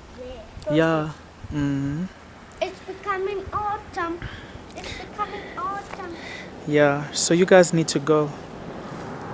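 A young girl shouts and talks excitedly close by.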